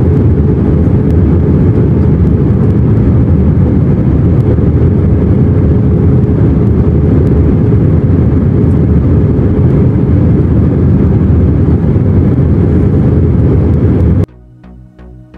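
A jet airliner's engines roar steadily in flight, heard from inside the cabin.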